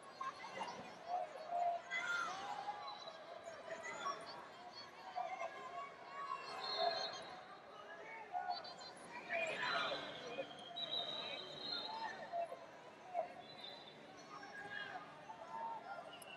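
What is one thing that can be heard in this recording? A crowd murmurs and chatters in a large echoing arena.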